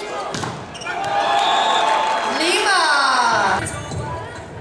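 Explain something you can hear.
A crowd cheers loudly in a large echoing hall.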